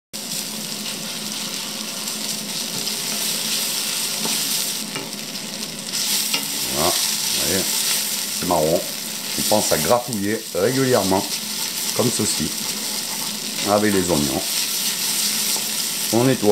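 Onions sizzle steadily in a hot pan.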